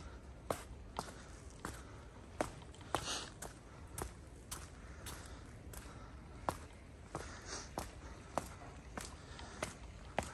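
Footsteps tread steadily on a stone path, close by.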